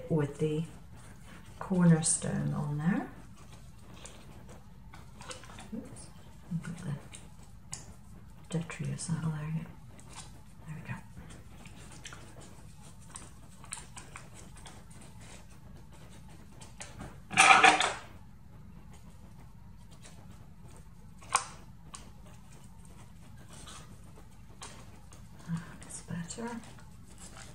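Paper rustles and crinkles as hands fold and handle it.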